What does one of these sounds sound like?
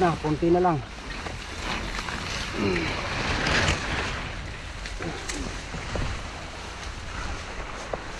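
Leaves rustle as a man pushes through thick plants.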